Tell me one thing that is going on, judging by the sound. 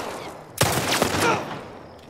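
A gunshot bangs.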